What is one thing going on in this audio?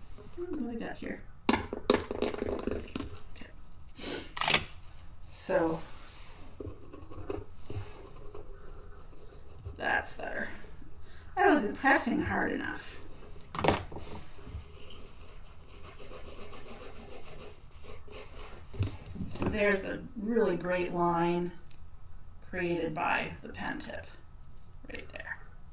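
A woman talks casually into a nearby microphone.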